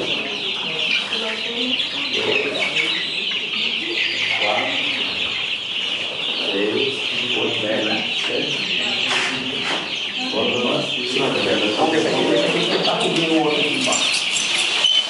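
Men talk nearby in a mix of casual voices.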